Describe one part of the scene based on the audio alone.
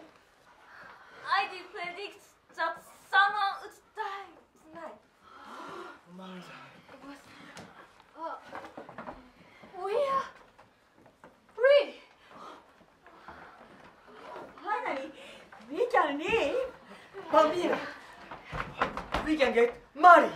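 Young women speak with animation, heard from a distance in a room with some echo.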